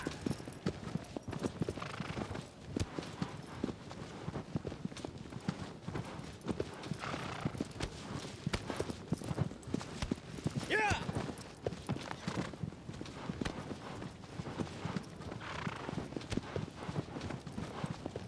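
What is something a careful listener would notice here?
Horse hooves gallop quickly over grass.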